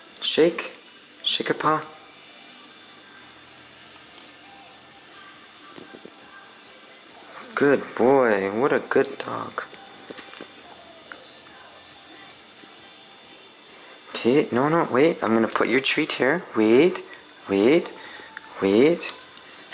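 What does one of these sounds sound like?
A woman talks to a dog close by in a high, playful voice.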